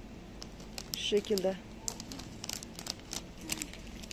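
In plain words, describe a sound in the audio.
A plastic wrapper crinkles as it is handled.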